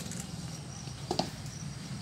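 A guard stamps a boot on pavement.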